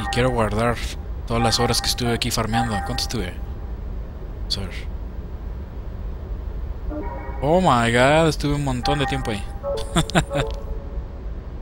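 Electronic menu chimes ring out in short bursts.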